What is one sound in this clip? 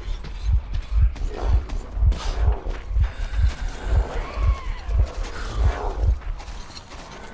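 Heavy footsteps crunch on gravel at a steady pace.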